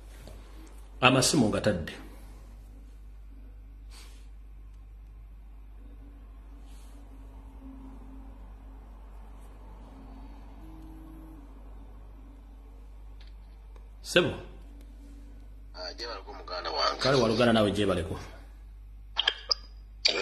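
A man speaks calmly and close up, in short bursts with long pauses.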